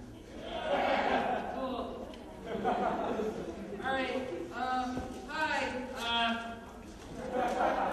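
A young man talks into a microphone through a loudspeaker.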